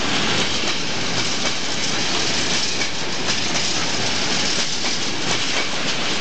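A freight train rumbles past close by, its wheels clattering loudly on the rails.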